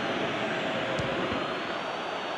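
A football is struck with a sharp thump.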